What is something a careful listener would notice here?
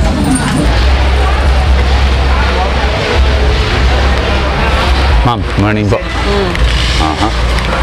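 Busy street noise murmurs steadily outdoors.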